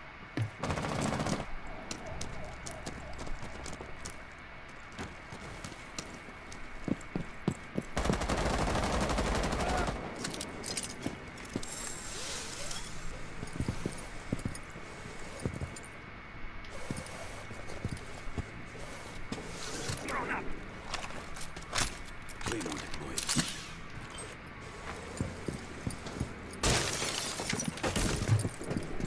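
Footsteps thud on a hard rooftop.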